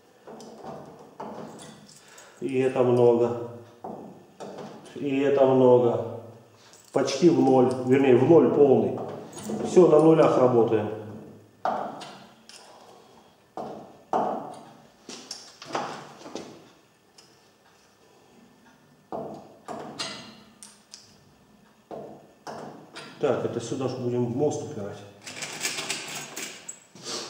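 A slide hammer knocks sharply against metal, again and again.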